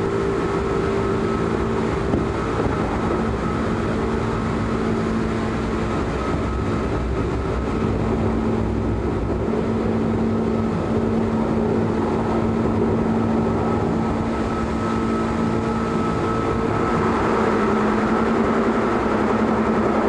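A train's motor hums with a steady drone.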